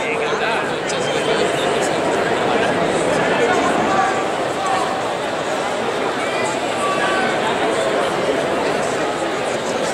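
Men talk nearby over the crowd.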